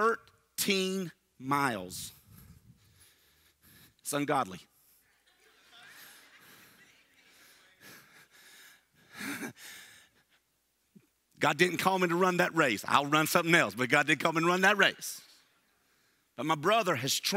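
A middle-aged man speaks with animation through a headset microphone, with pauses.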